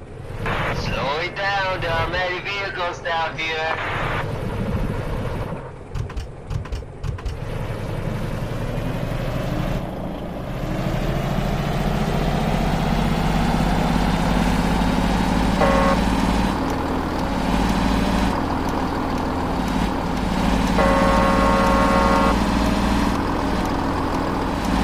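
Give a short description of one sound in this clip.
A truck engine drones and slowly rises in pitch as the truck speeds up.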